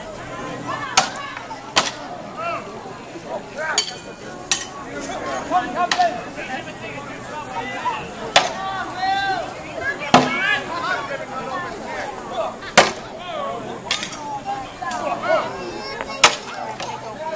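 Swords clash with sharp metallic clangs.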